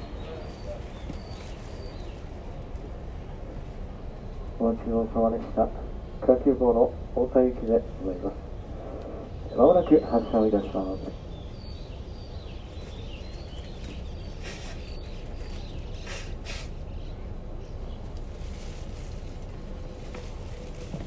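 A train rumbles low and steadily on the tracks.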